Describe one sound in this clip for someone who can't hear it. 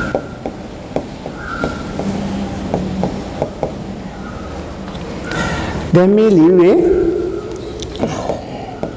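A pen taps and clicks against a glass board.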